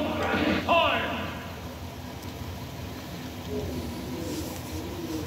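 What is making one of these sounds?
Video game sound effects and music play from a television.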